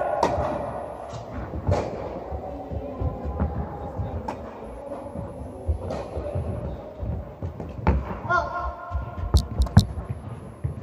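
Tennis balls are struck with a racket, with hollow pops echoing in a large hall.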